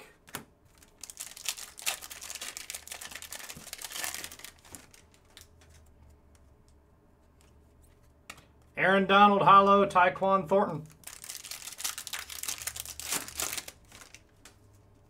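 A foil wrapper crinkles and tears open close by.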